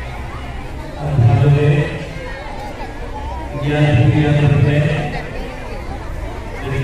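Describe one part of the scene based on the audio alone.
A man speaks loudly into a microphone, heard through a loudspeaker outdoors.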